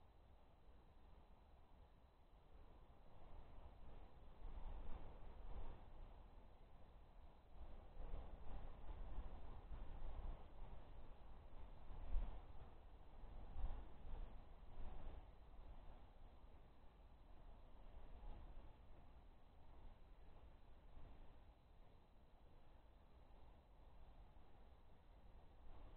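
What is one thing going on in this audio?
Wind gusts outdoors, buffeting and rumbling in uneven bursts.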